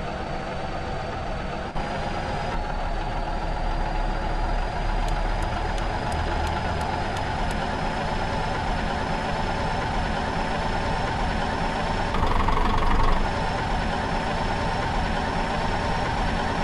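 A heavy diesel truck engine drones while cruising.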